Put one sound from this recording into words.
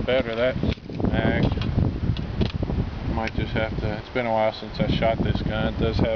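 A pistol's metal parts click while being handled.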